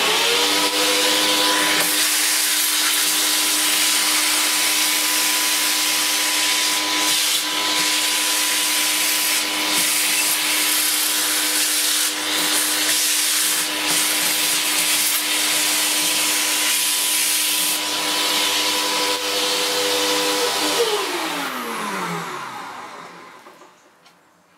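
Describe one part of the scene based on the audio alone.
A vacuum cleaner roars steadily, then winds down with a falling whine.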